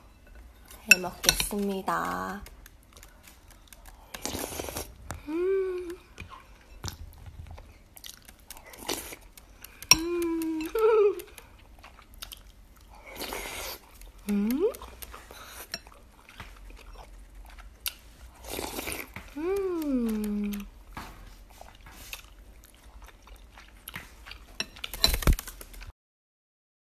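A young woman slurps and chews food close by.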